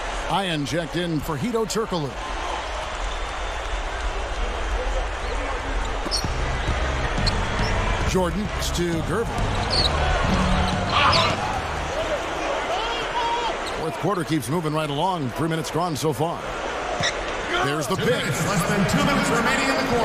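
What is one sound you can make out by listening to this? A crowd cheers and murmurs steadily in a large echoing arena.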